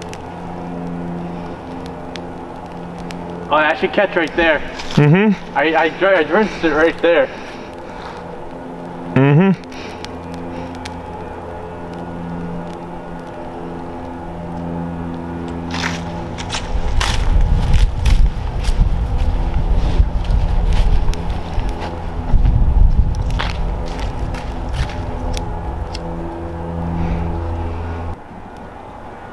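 A leaf fire crackles and pops.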